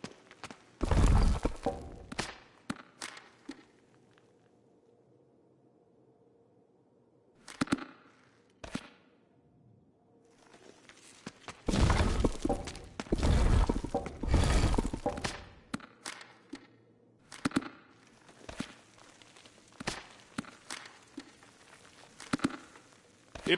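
Paper pages rustle as a notebook is handled.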